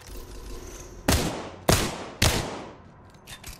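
A rifle fires several loud shots.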